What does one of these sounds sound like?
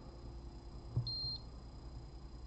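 An electronic meter gives a short high beep.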